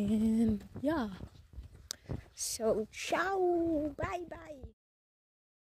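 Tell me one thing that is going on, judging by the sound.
A young woman speaks with animation close to a phone microphone.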